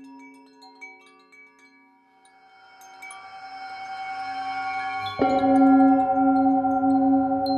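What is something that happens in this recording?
A singing bowl rings with a steady, humming tone that swells louder.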